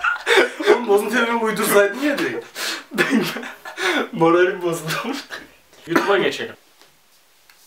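A young man laughs and talks with animation close by.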